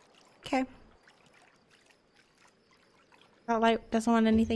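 Water splashes softly as a swimmer paddles.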